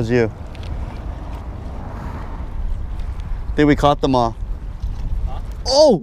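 A fishing reel clicks as its handle is cranked.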